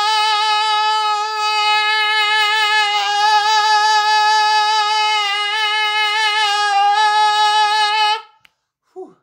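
A man sings one long, steady, loud note close to a microphone.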